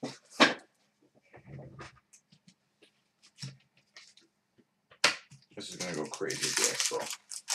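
Playing cards rustle and snap as they are handled.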